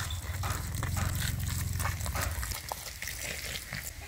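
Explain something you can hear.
Liquid pours and splashes into a metal basin.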